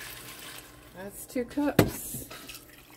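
A glass jar clinks against a metal pot.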